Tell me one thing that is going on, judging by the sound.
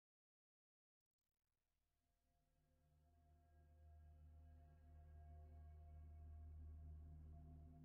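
Low, droning music fades in slowly and swells.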